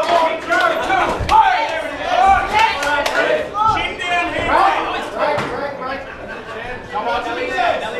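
Punches thud against pads and bodies.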